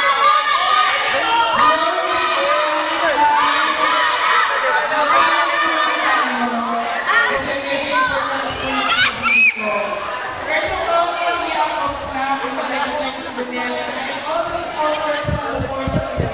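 A woman speaks cheerfully into a microphone over loudspeakers.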